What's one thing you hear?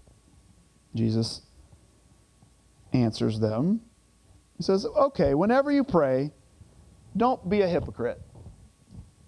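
A middle-aged man speaks calmly into a microphone in short phrases, with pauses.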